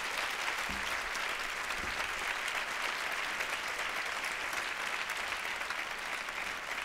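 An audience applauds loudly and steadily in a large hall.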